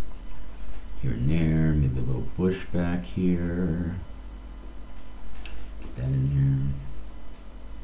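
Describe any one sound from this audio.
An elderly man speaks calmly into a headset microphone.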